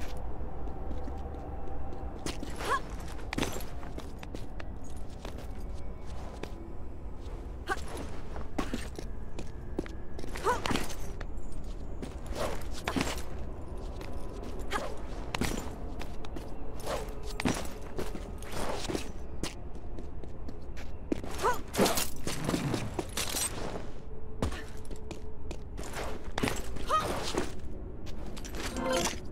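Light footsteps thud on stone.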